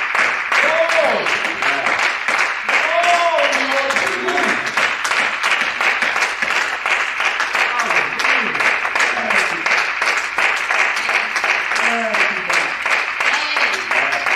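A man prays aloud close by in an emotional, trembling voice.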